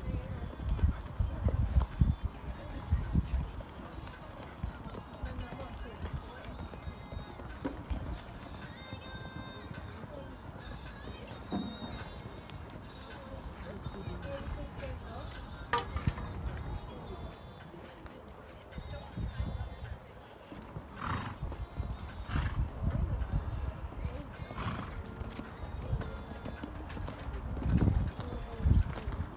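A horse canters on sand, its hooves thudding dully.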